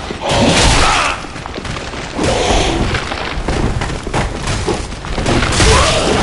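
Metal blades clash and clang in a fight.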